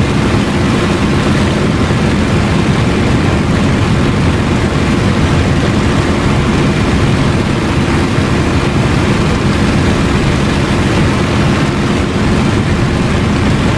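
A propeller engine drones loudly and steadily.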